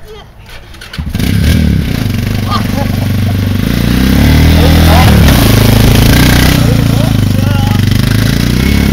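A quad bike engine revs loudly close by.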